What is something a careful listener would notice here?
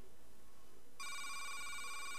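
A steady electronic chime starts up.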